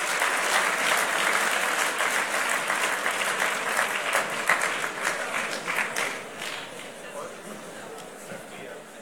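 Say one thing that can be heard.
An audience applauds in a large hall and the clapping fades away.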